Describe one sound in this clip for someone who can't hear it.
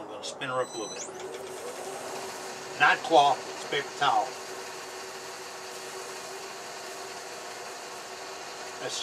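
A lathe motor hums steadily as the workpiece spins.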